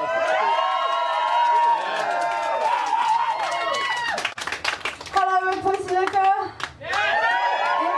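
A crowd cheers and screams loudly.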